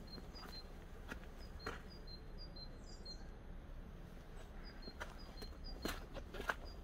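Footsteps crunch on snowy ground.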